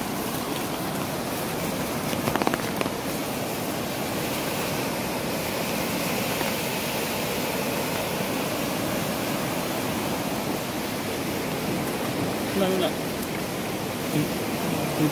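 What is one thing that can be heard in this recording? A flooded river rushes and roars loudly nearby.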